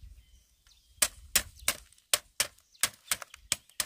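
Feet press on a woven bamboo mat, making it crack and creak.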